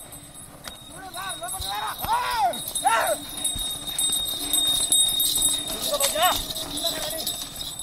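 Men shout loudly outdoors.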